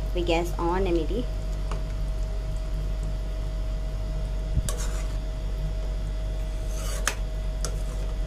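A metal spoon scrapes and stirs through thick curry in a pan.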